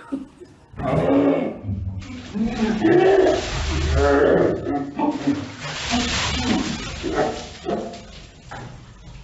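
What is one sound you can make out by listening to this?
A young man shouts and gasps close by.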